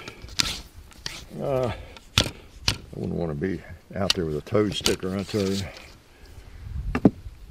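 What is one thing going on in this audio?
A wooden ramrod knocks and scrapes against a metal barrel.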